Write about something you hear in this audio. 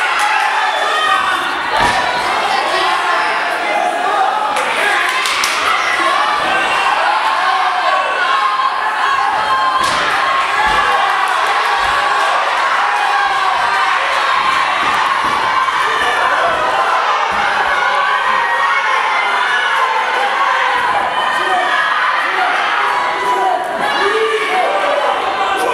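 A crowd of spectators shouts and cheers indoors.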